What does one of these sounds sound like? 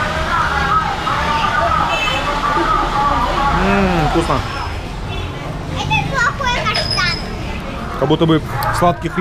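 A crowd murmurs steadily in the background.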